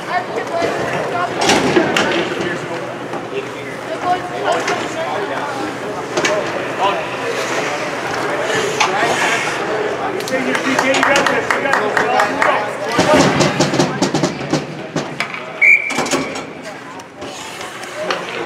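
Hockey sticks click and clack against the ice and each other.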